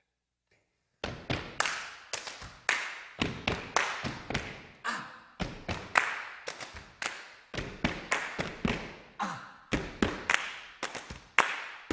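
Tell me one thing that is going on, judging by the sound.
Feet stomp and shuffle in rhythm on a wooden floor.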